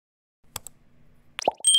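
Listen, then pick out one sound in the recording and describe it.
A mouse button clicks.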